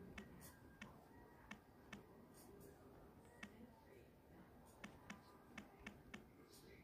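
Phone keyboard taps click one after another at an uneven pace.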